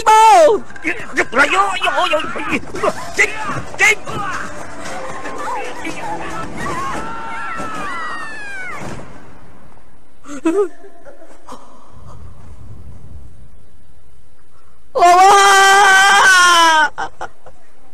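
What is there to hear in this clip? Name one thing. A woman wails and sobs loudly.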